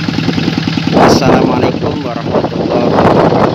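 A man talks loudly over the engine.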